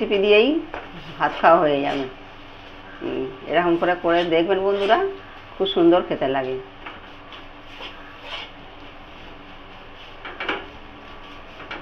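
A metal spatula scrapes and stirs food in a metal wok.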